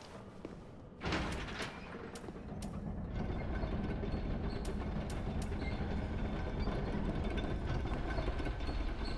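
Heavy armoured footsteps thud and clink on stone.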